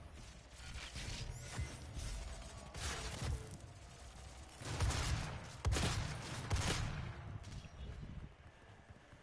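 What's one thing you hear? Guns fire in loud bursts with heavy booms.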